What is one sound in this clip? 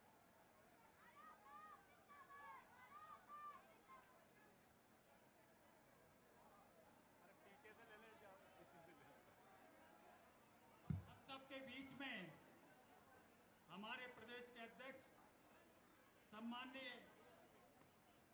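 A crowd of men chatter and call out nearby.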